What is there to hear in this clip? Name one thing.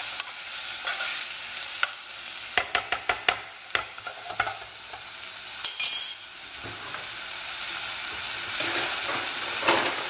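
Onions sizzle softly in a hot pot.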